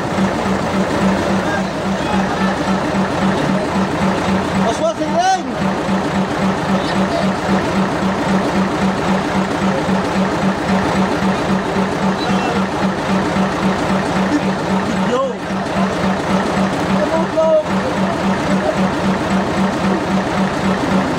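A fishing boat's engine runs with an even pulsing hum.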